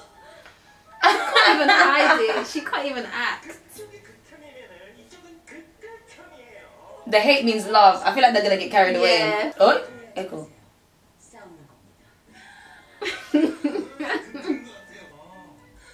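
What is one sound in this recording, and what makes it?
A young woman talks and laughs with animation close by.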